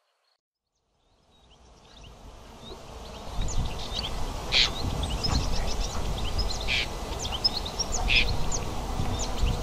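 A bird chatters and calls.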